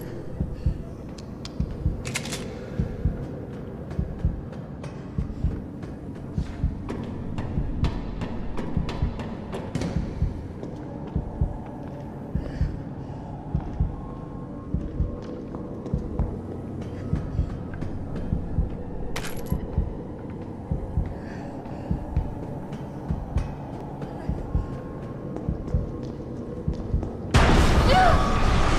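Footsteps tread on a metal floor.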